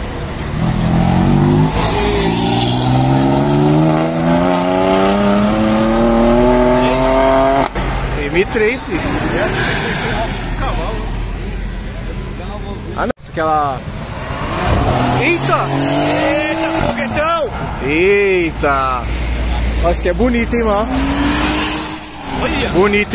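A car engine revs loudly and rises in pitch as the car speeds past.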